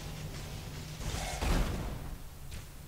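A magic spell bursts with a bright whoosh.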